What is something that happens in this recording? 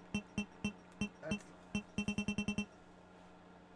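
Menu cursor beeps tick quickly, one after another.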